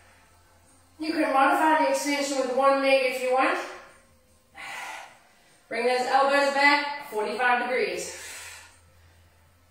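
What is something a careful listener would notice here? A young woman talks nearby between breaths.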